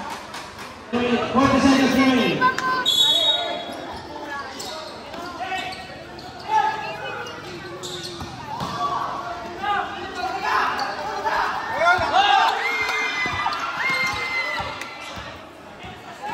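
A crowd of spectators shouts and cheers.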